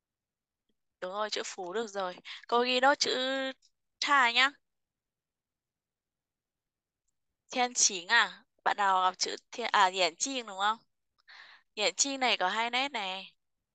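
A woman speaks calmly through an online call, pausing between phrases.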